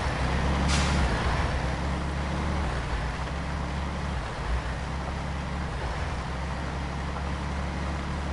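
Truck tyres crunch over a gravel road.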